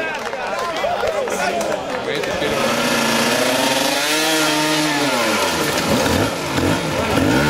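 Dirt bike engines rev and whine loudly nearby.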